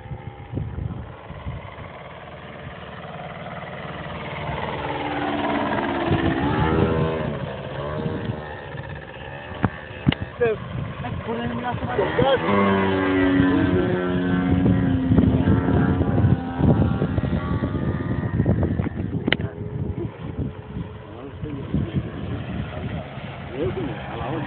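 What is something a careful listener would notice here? Wind rumbles into the microphone outdoors.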